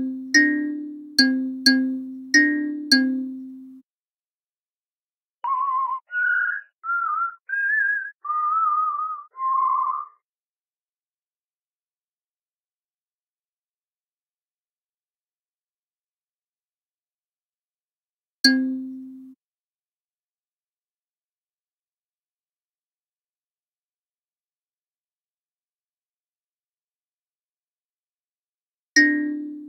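A thumb piano plucks single ringing notes, now quickly in a row, now one at a time.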